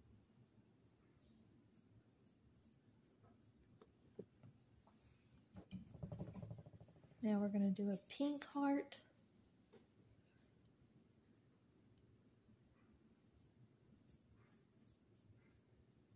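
A paintbrush dabs and strokes softly on paper.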